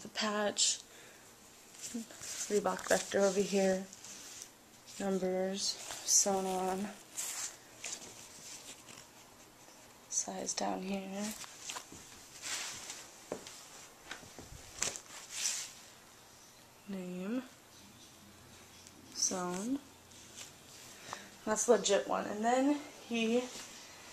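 Fabric rustles close by as it is handled.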